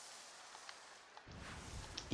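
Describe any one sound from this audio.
Dice clatter as they roll.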